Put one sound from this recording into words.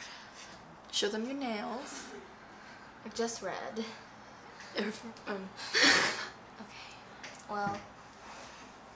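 A second teenage girl talks casually close by.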